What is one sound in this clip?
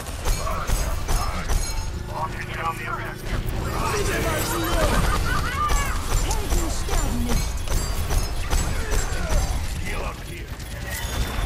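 A video game energy weapon fires in rapid bursts.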